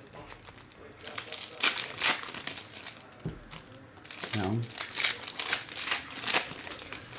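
Foil wrappers crinkle and rustle as hands tear open card packs.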